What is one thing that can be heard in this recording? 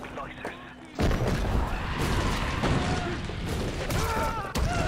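An explosion booms and fire roars.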